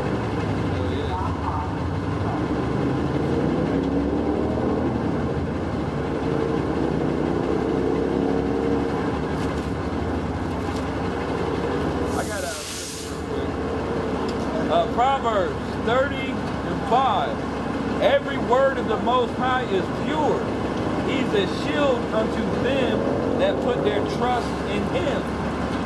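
A bus engine idles nearby with a low steady rumble.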